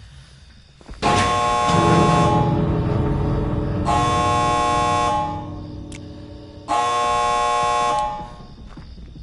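A loud electronic alarm blares in long bursts.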